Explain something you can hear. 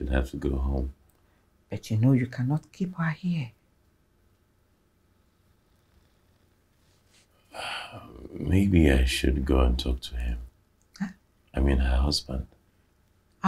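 A man speaks quietly and with emotion, close by.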